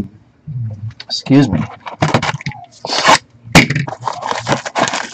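Hands pick up and handle a cardboard box, which rustles and thumps.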